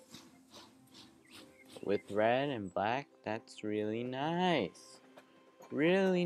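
A steam train puffs along a track.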